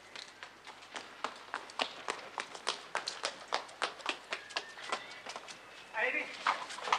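Quick footsteps run across cobblestones.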